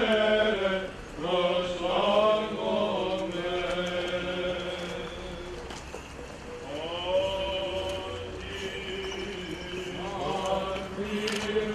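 A group of men chant together in long, held notes outdoors.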